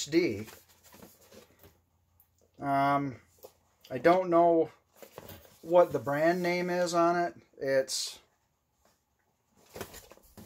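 A cardboard box rustles in a man's hands.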